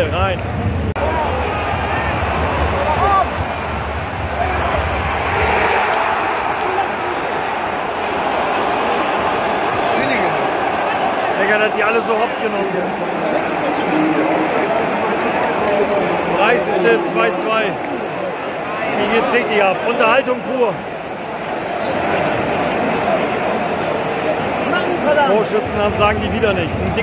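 A large stadium crowd sings and chants loudly in an open-air arena.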